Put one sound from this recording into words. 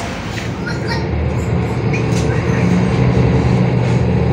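A bus engine hums and rumbles from inside the bus as it drives.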